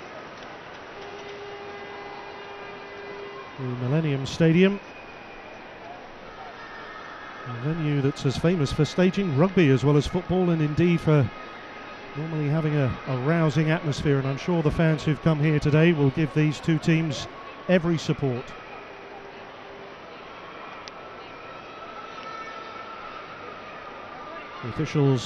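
A crowd murmurs steadily in a large, echoing stadium.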